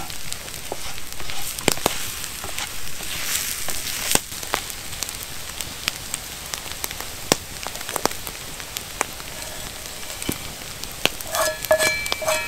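A wooden spatula scrapes against a pan.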